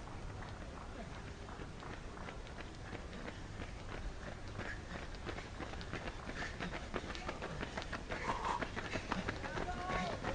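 Runners' footsteps patter on asphalt in the distance.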